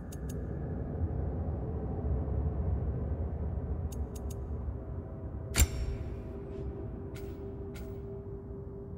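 Soft interface clicks tick as menu selections change.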